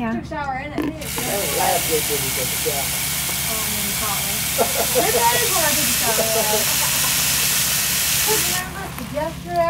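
Tap water runs and splashes into a plastic container.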